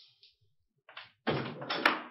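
A door latch clicks as a door handle is turned.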